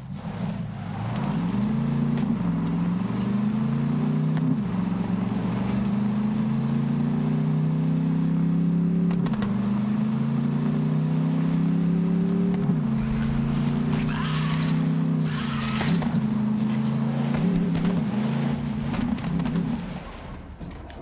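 A vehicle engine revs and hums steadily, rising and falling in pitch as it drives.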